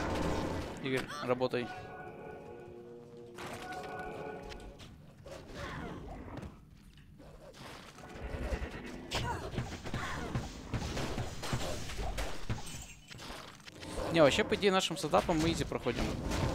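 Magic spells burst with sharp blasts.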